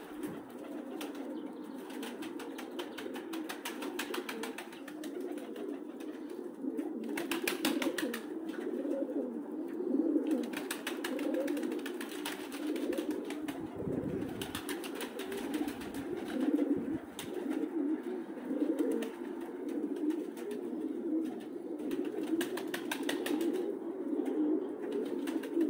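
Many pigeons coo steadily, close by.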